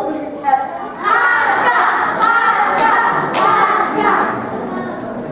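Several actors cry out and wail together.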